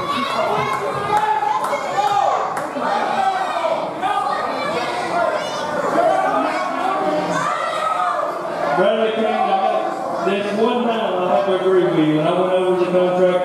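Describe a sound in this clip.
A man announces loudly over a loudspeaker in a large echoing hall.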